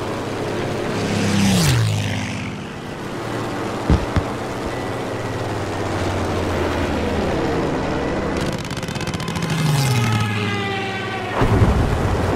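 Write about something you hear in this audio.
Another plane roars past closely, its pitch falling.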